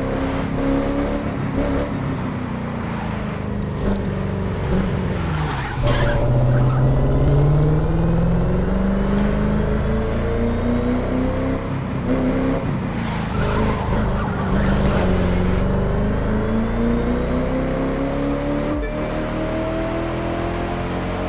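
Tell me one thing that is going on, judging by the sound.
A powerful sports car engine roars, its pitch dropping through the corners and rising as it speeds up.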